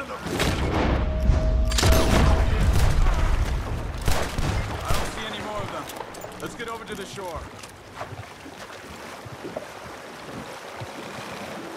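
Water laps against a canoe as it is paddled.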